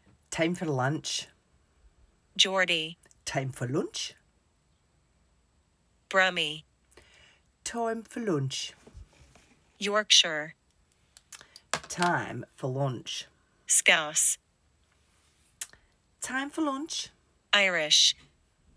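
A middle-aged woman speaks close to a microphone in short, animated phrases.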